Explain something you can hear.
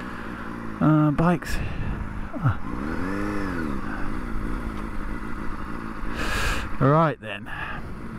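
A motorcycle engine revs sharply in short bursts, rising and falling in pitch.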